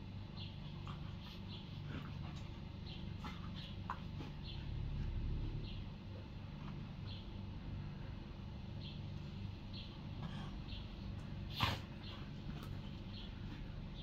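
Two dogs growl softly as they play-fight.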